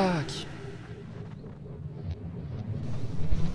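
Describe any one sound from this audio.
An arrow whooshes through the air.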